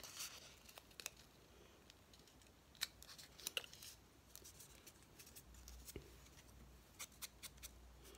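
Small objects click and tap against paper.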